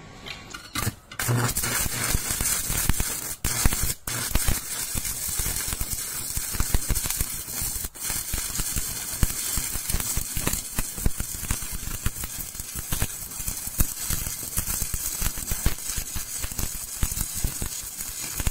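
An arc welder crackles and sizzles steadily.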